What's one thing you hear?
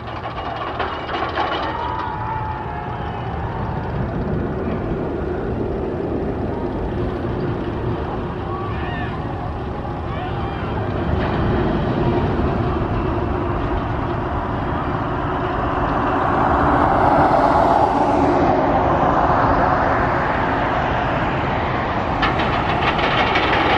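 A roller coaster train rumbles and roars along its track in the distance, swelling louder for a while.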